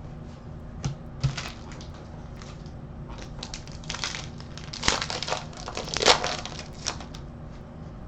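Foil wrappers crinkle and tear as card packs are opened.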